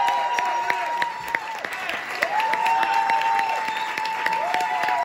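An audience applauds with scattered, close claps.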